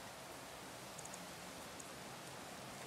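Soft game menu clicks tick quietly.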